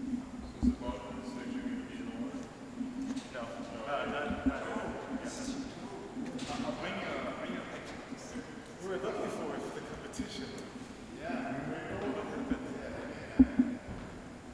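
A man speaks casually nearby.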